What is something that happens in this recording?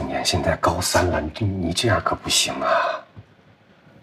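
A middle-aged man speaks firmly and reproachfully, close by.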